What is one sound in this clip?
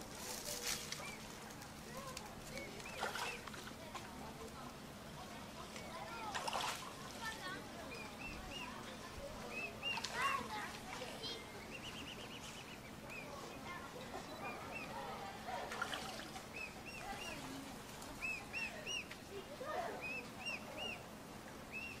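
A cygnet peeps in short high chirps.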